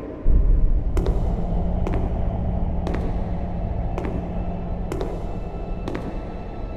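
Footsteps thud on stone at a slow, even pace.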